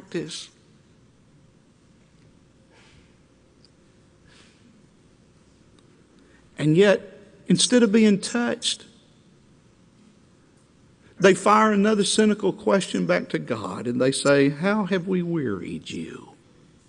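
A middle-aged man speaks with emphasis through a microphone, pausing between phrases.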